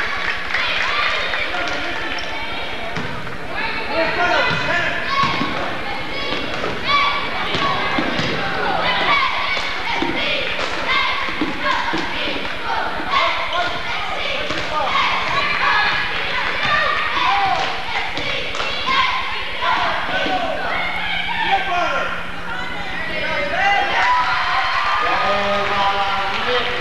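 A crowd in a large echoing gym cheers and shouts.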